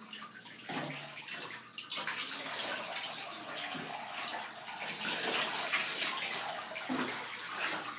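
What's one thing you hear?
Hands splash and rub water in a bathtub.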